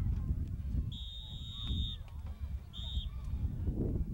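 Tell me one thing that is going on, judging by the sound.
A referee blows a sharp whistle twice.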